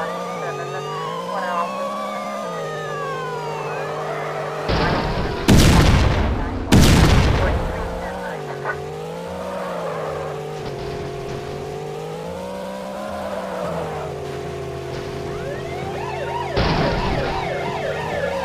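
A car engine hums steadily, rising and falling in pitch as the car speeds up and slows down.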